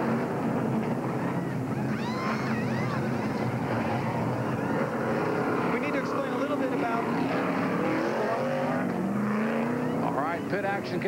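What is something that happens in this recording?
A large crowd cheers in an open-air stadium.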